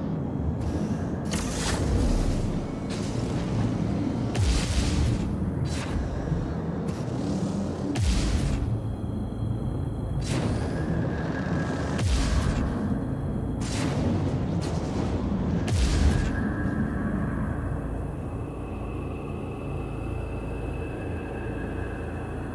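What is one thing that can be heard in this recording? A ship's engines roar steadily as it flies.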